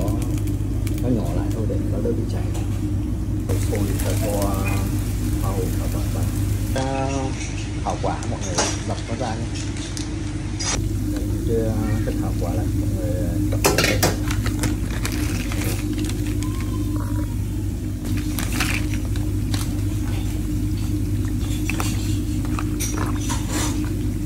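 Water boils and bubbles steadily in a pan.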